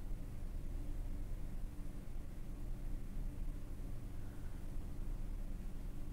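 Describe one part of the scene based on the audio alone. A finger presses a laptop's power button with a soft click.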